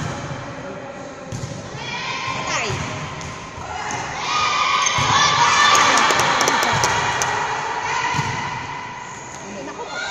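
A volleyball thumps off players' hands and forearms.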